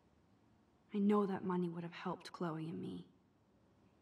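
A young woman speaks softly and thoughtfully.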